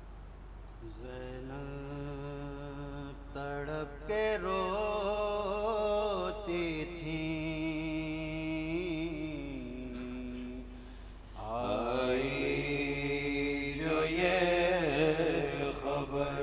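A man sings a slow, mournful chant into a microphone, close by.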